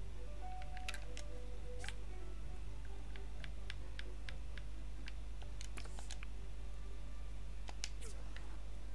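Short soft clicks tick as a game menu is scrolled.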